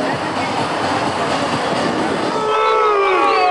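A large crowd roars in an open stadium.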